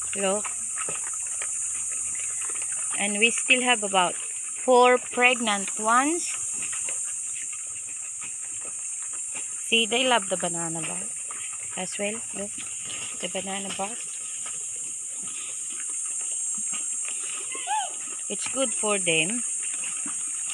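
Pigs squeal and grunt nearby in short bursts.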